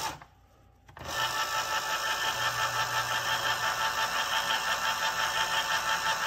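An electric can opener whirs steadily as it turns a can.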